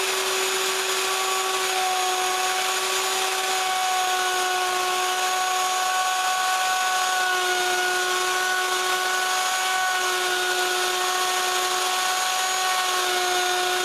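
An electric router whines steadily at high speed.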